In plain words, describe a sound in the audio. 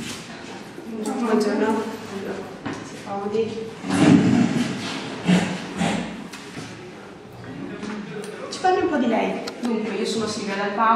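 Young women talk calmly nearby.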